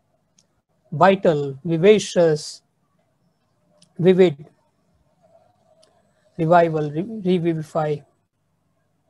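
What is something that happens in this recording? An elderly man speaks calmly over an online call, in short phrases with pauses.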